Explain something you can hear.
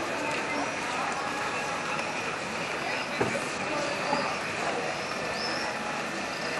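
People murmur faintly in an outdoor street.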